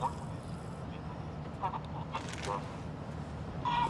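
A young woman slurps a drink through a straw.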